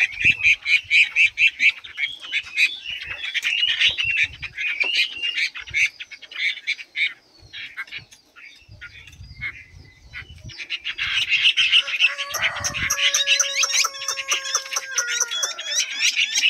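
Small caged birds chirp and trill rapidly close by.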